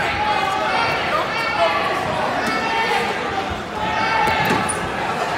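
A crowd of spectators chatters and calls out in a large echoing gym.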